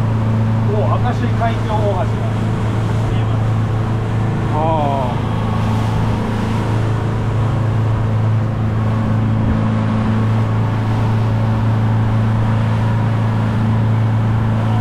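Water splashes against a moving hull.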